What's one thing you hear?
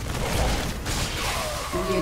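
Electric bolts crackle and zap.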